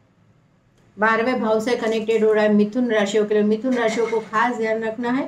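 A middle-aged woman speaks calmly and clearly, close by.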